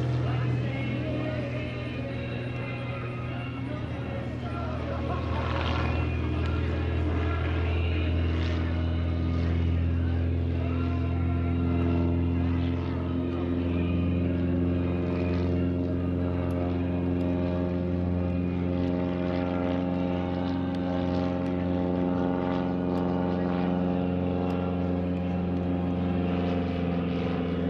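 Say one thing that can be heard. A small propeller plane drones overhead, its engine pitch shifting as it turns.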